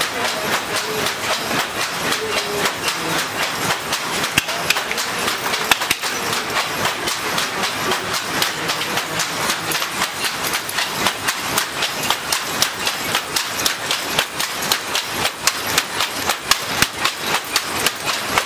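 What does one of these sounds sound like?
Many looms clatter all around in a noisy room.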